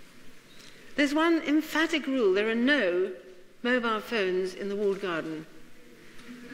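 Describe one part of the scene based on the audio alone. A woman lectures through a microphone in a large, echoing hall.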